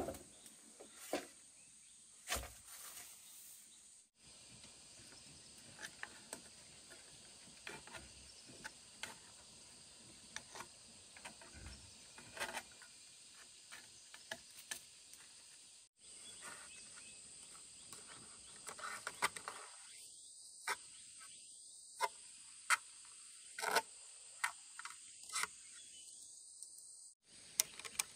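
A woman rustles through leafy plants.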